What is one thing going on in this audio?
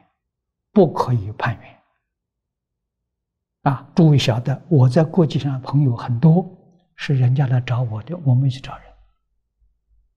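An elderly man speaks calmly and close into a microphone, in short phrases with pauses.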